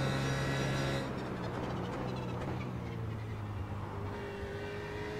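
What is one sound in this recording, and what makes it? A race car engine drops in pitch as the car slows and downshifts.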